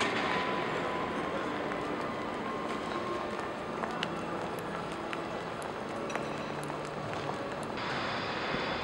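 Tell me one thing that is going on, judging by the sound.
Footsteps echo softly in a large hall.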